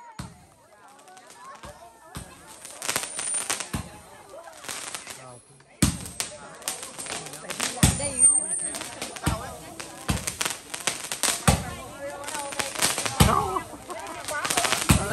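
Fireworks crackle and bang loudly outdoors.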